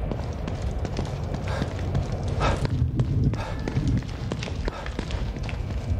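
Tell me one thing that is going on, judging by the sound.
Footsteps walk across a hard tiled floor.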